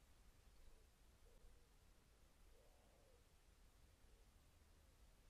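Birds call softly nearby.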